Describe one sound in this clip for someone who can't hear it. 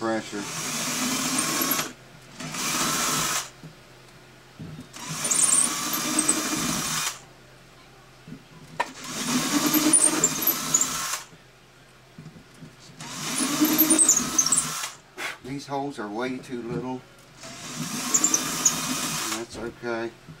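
A cordless drill whirs in short bursts, starting and stopping.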